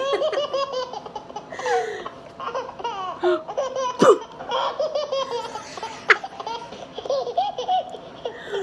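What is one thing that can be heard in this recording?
A woman laughs up close.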